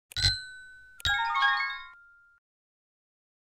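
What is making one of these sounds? A short game jingle plays as the puzzle is solved.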